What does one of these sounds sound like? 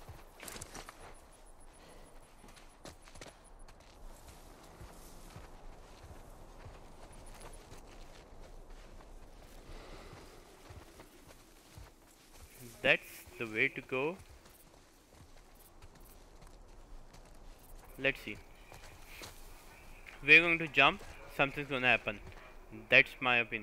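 Footsteps rustle softly through tall grass and leaves.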